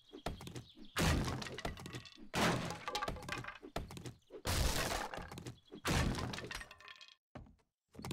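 Wood cracks and splinters as logs break apart.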